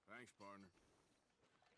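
A young man speaks briefly and casually, close to a microphone.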